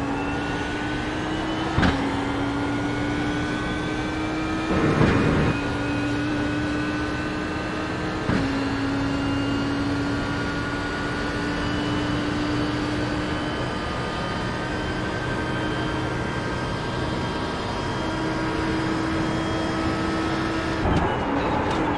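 A race car engine roars at high revs, shifting up through the gears.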